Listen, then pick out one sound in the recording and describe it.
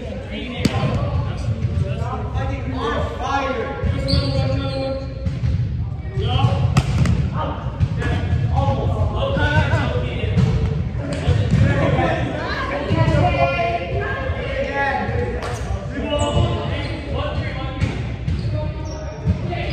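Young men shout and talk with animation in a large echoing hall.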